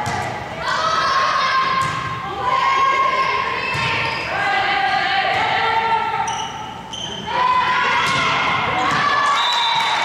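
Young girls shout and cheer loudly in an echoing gym.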